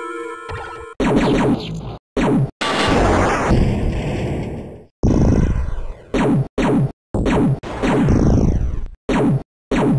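Loud crackling blasts and explosions burst in quick succession.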